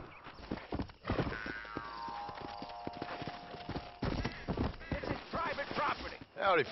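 Hooves clop on a dirt track as a horse trots.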